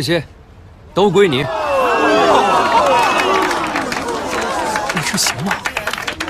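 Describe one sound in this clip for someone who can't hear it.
A crowd cheers and whoops loudly.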